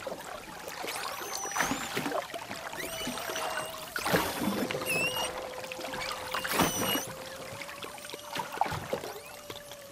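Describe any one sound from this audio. Whales and dolphins whistle in high, gliding squeaks underwater.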